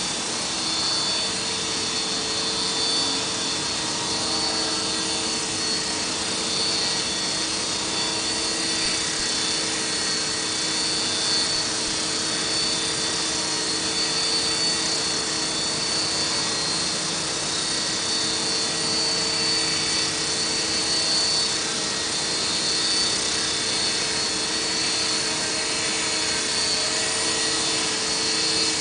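A small toy helicopter's rotor whirs and whines steadily as it hovers outdoors.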